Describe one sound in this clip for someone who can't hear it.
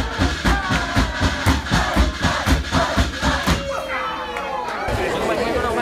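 A group of people sings loudly.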